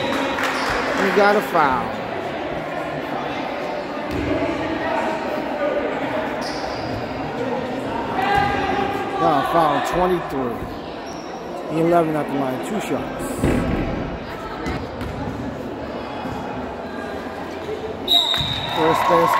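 Spectators chatter and call out in a large echoing gym.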